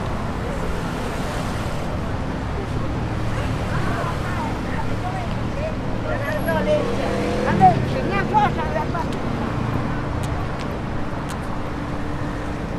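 Traffic hums steadily outdoors in a busy street.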